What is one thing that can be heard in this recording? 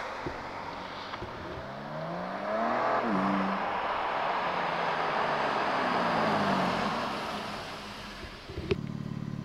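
A car approaches on a road and passes by with a rising engine roar.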